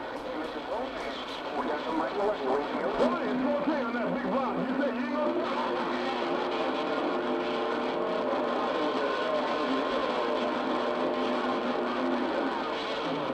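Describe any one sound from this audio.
A shortwave radio hisses with crackling static and warbling, garbled signals.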